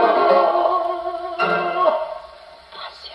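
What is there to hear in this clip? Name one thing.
A gramophone plays music with a tinny, old-fashioned sound.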